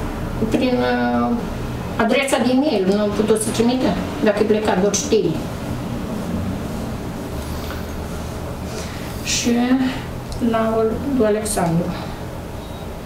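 A middle-aged woman talks on the phone close by, calmly.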